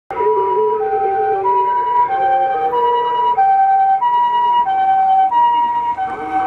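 An ambulance siren wails in a fast two-tone pattern close by.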